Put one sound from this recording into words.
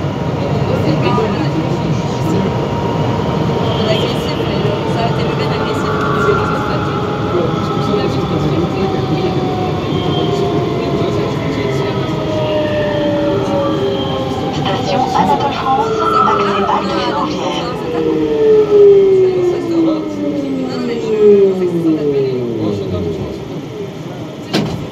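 A metro train rumbles steadily through a tunnel.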